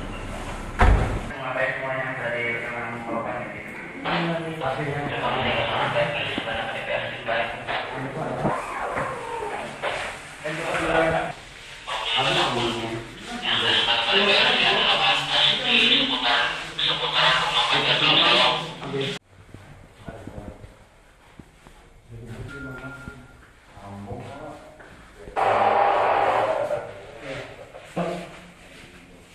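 Several men talk loudly over one another nearby.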